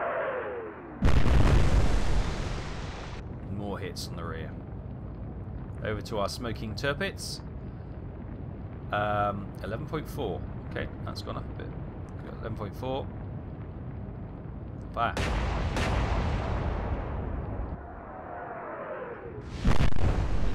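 Shells explode and splash into the sea with heavy booms.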